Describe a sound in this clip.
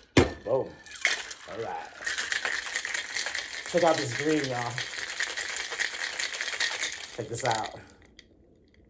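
Ice rattles hard inside a cocktail shaker being shaken fast.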